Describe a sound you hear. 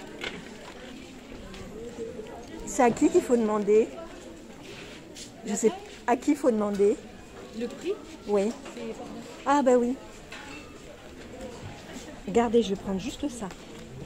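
A wool coat rustles as a hand handles it.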